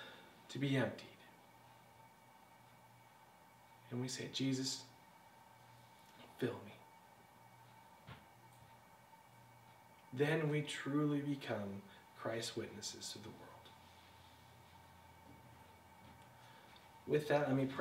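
A man speaks calmly in short phrases with long pauses, in a room with a slight echo.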